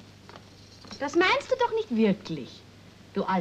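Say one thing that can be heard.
A woman speaks cheerfully, close by.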